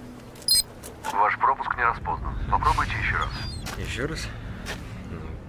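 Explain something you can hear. A man speaks in a low, tense voice close by.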